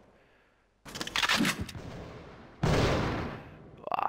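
A pistol is reloaded with a metallic clatter.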